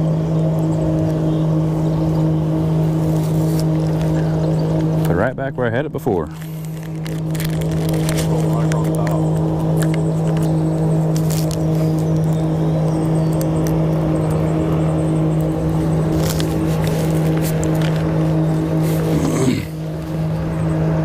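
An electric boat motor hums steadily, briefly wavering and dipping.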